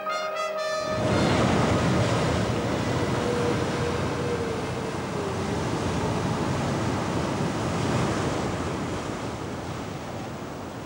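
Waves crash loudly against rocks.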